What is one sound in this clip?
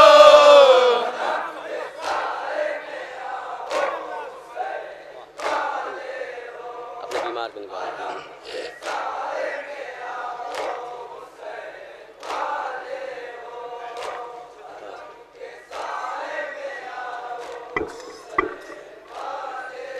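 A group of men chant together in response.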